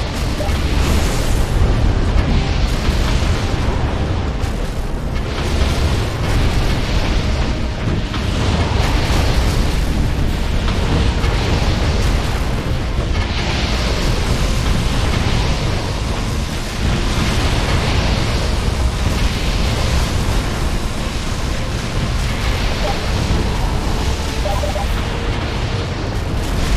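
Game towers fire rapid laser zaps and blasts.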